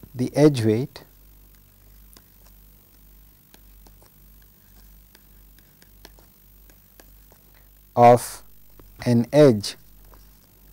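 A man speaks calmly into a close microphone, in short bursts.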